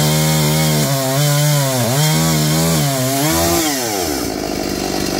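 A chainsaw revs loudly, its engine rising and falling in pitch.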